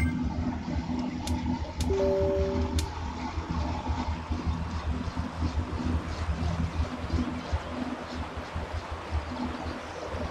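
A bike trainer whirs in a low, pulsing drone as a rider pedals hard.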